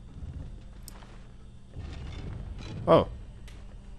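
A heavy stone lid scrapes open.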